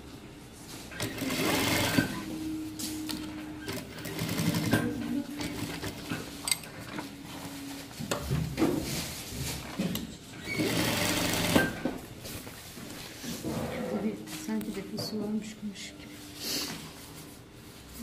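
A sewing machine whirs in bursts as it stitches.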